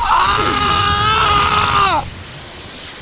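A young man screams loudly and excitedly into a microphone.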